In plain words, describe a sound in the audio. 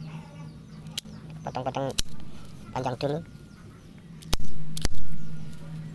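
Pruning shears snip through stems with sharp clicks.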